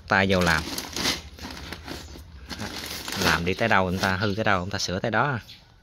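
A plastic bag rustles as a hand handles it.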